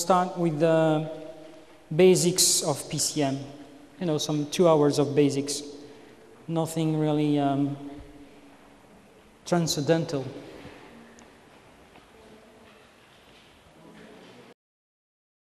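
A man speaks clearly in a quiet room.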